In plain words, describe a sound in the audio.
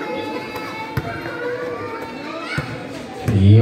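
A basketball bounces sharply on a hard floor.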